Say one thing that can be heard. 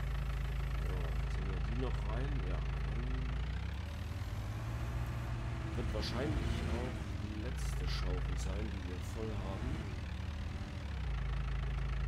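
A wheel loader's engine revs up and down repeatedly.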